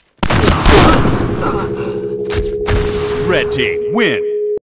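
A short triumphant game jingle plays with steady tones.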